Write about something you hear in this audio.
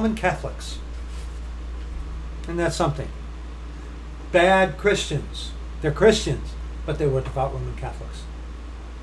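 A middle-aged man talks calmly and with animation close to a microphone.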